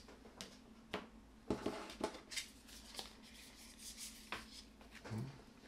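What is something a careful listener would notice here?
Cards rustle and tap as hands shuffle them.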